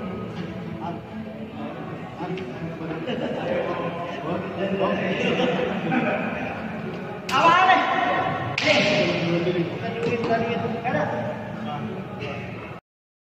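A man speaks calmly, explaining, in a large echoing hall.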